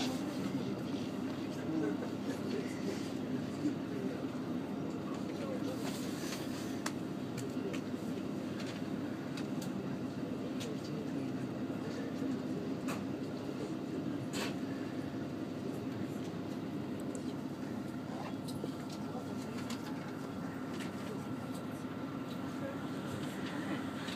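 Train wheels click and rattle now and then over the rail joints.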